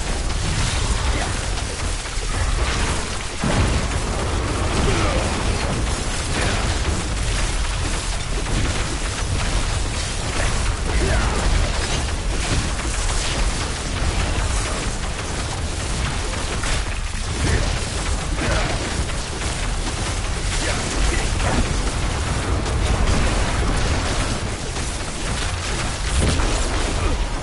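Fire spells roar and crackle in quick bursts.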